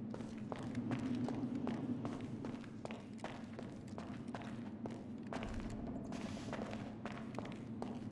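Footsteps crunch steadily on gravel inside an echoing tunnel.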